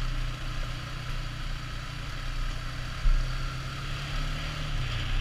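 An all-terrain vehicle engine rumbles steadily up close.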